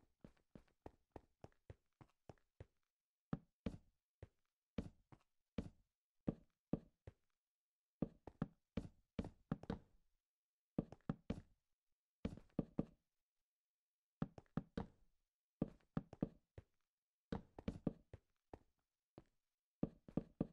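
Quick footsteps thud and scrape on a hard floor.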